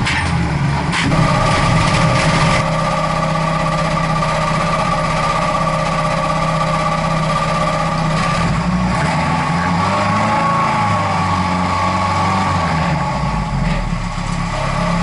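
A race car engine idles with a steady rumbling hum close by.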